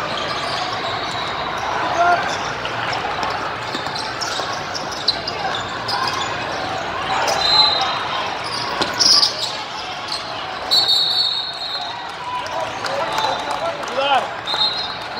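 A crowd of players and onlookers chatters and calls out in the background.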